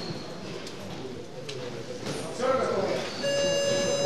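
A man calls out commands loudly.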